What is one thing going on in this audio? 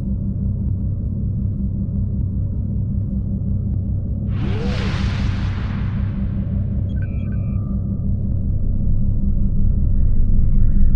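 A spaceship engine rumbles with a low steady drone.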